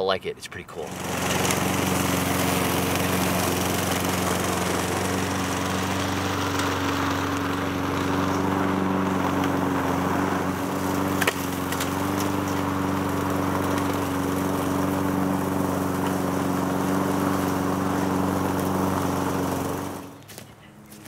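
A lawn mower engine runs steadily.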